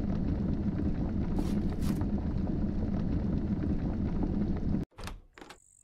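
A fire crackles and roars steadily.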